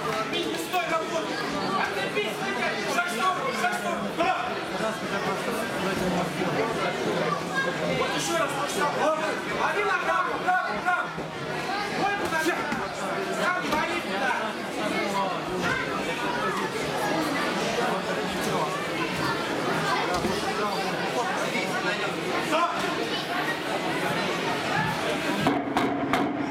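A crowd of spectators chatters and shouts in an echoing hall.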